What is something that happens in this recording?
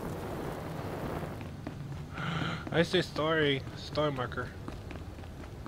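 Footsteps patter quickly on a hard stone floor.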